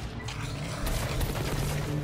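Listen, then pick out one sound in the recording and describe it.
A rifle fires a single loud crack.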